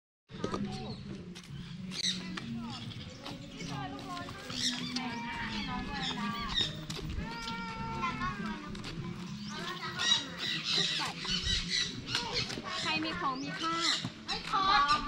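Footsteps shuffle on a concrete path.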